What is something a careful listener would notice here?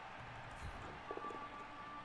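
Dice rattle and clatter as they roll.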